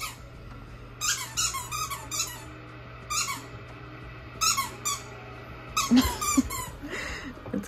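A dog squeaks a rubber toy repeatedly.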